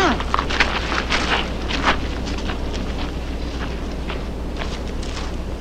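Footsteps scuff on hard ground.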